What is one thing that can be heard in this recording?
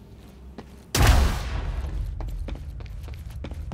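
A loud blast roars and rumbles.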